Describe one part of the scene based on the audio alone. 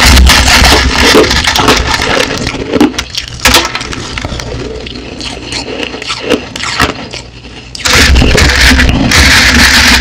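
Fingers crackle through loose shaved ice.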